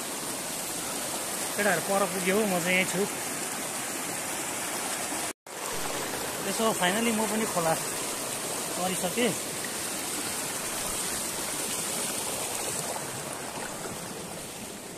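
A shallow stream rushes and gurgles over rocks close by.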